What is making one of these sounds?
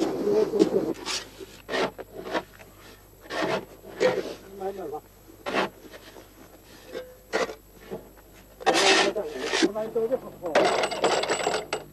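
A shovel scrapes and scoops into coarse salt.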